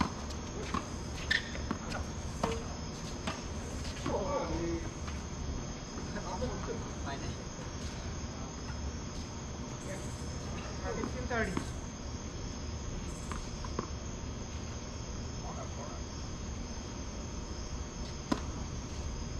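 Tennis balls pop off rackets in sharp knocks.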